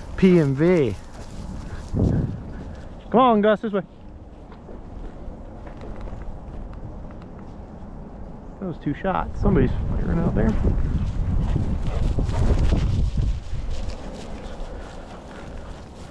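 Footsteps swish and crunch through dry grass.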